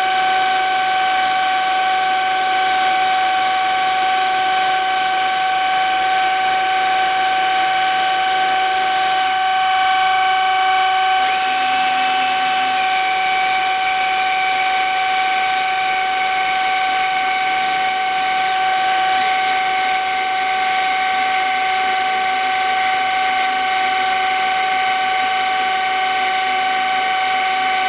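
A lathe spins with a steady high whine.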